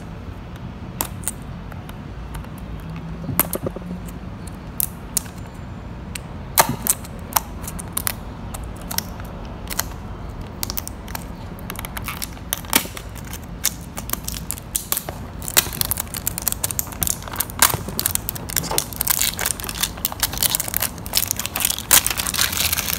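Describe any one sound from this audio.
Plastic wrapping crinkles and rustles as it is peeled off a box.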